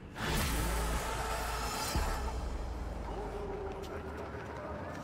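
A car engine hums and drives away.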